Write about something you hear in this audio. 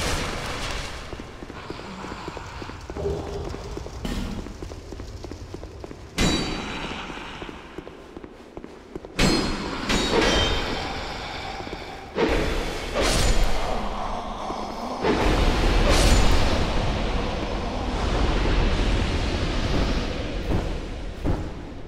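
Footsteps clank on stone in an echoing tunnel.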